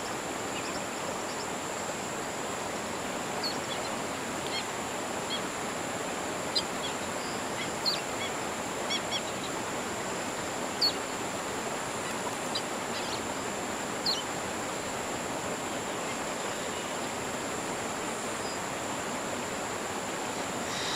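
Water laps softly at a lake shore.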